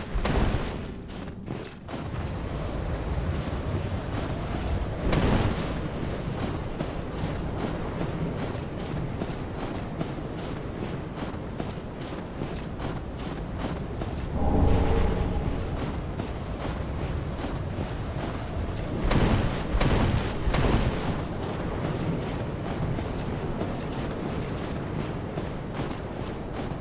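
Footsteps crunch quickly through snow.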